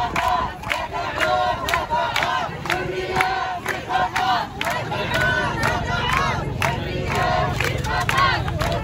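A crowd of men and women shouts and chants loudly outdoors.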